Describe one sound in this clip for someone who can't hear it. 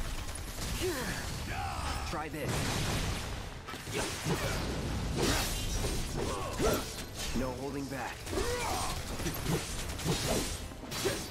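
A sword clangs against metal again and again.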